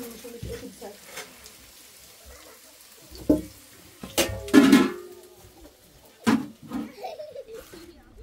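Metal pots clank and knock together close by.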